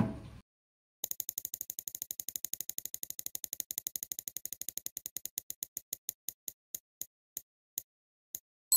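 A prize wheel ticks rapidly as it spins, then slows to a stop.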